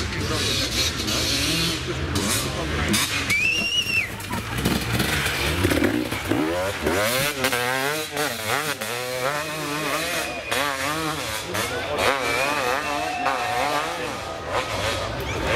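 A dirt bike engine revs hard and sputters as it climbs a slope nearby.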